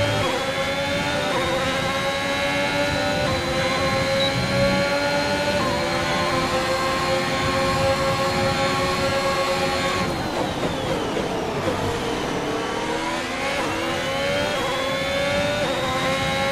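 A racing car engine screams at high revs, drops in pitch while slowing, then climbs again.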